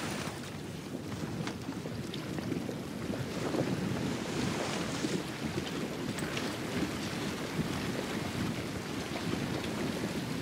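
Water splashes and rushes against a boat's hull as it sails along.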